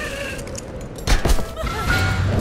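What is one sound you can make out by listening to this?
A heavy thud lands on wooden boards.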